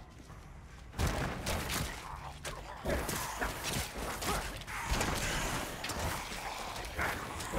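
Game combat sounds of spells and hits crash and clang.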